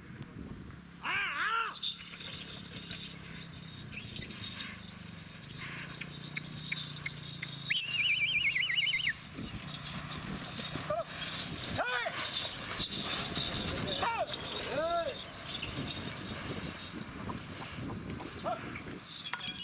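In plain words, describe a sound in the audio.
Men shout loudly to urge on bulls outdoors.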